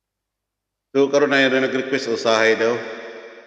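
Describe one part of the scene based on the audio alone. A middle-aged man sings loudly, close to a microphone.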